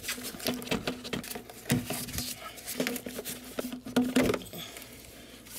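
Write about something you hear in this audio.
A rubber hose rustles and creaks as it is pulled loose.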